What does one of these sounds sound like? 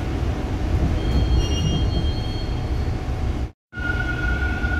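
Metal wheels squeal against the rails.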